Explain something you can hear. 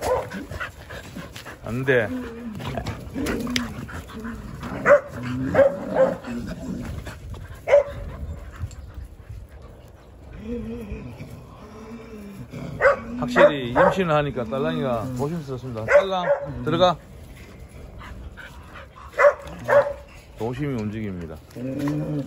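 Jindo dogs growl and grumble as they play.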